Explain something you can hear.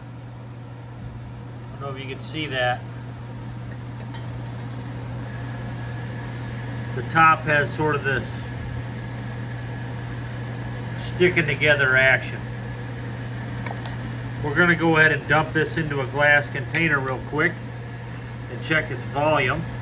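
A stove hums steadily.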